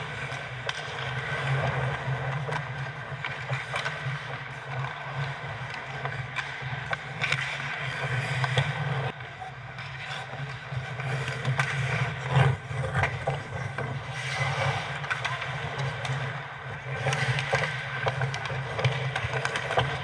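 Hockey sticks click and slap against a puck.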